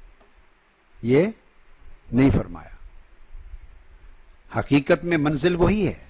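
An older man speaks with emphasis into a microphone, pausing between phrases.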